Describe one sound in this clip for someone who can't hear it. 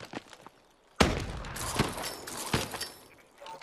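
Gunfire blasts loudly in a video game.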